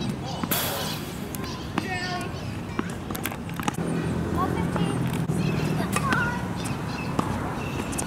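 Tennis balls pop sharply off rackets outdoors.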